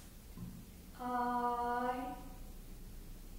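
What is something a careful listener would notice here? A woman sings a short, held high note in a reverberant hall.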